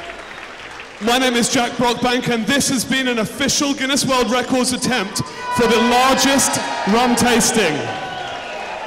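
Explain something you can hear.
A man speaks loudly with animation through a microphone in a large echoing hall.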